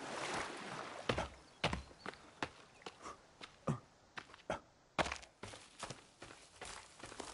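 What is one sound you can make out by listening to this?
Footsteps crunch over forest ground at a steady walk.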